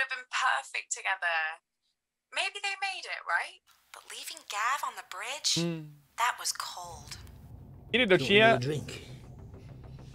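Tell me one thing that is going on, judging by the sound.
A young man speaks casually, close to a microphone.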